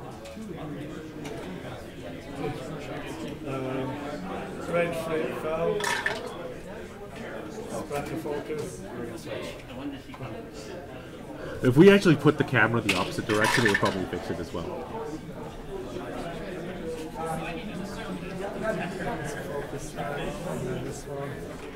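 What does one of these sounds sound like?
Plastic game pieces click as they are moved on a table.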